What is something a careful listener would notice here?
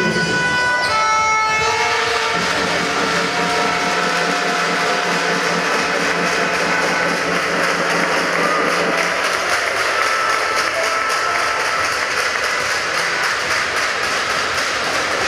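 A large crowd murmurs in an echoing hall.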